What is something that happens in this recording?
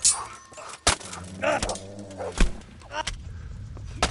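Metal weapons clang against armour.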